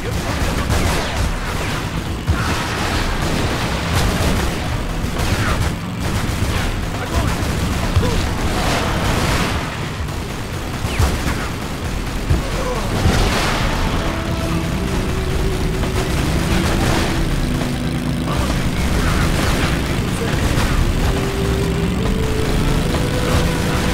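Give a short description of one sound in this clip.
A motorcycle engine roars steadily at speed.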